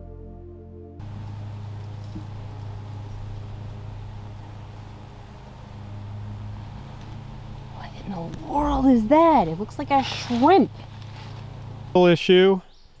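Bees buzz steadily among flowers.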